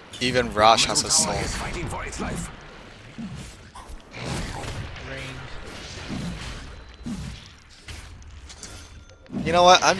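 Game spells whoosh and crackle in a fight.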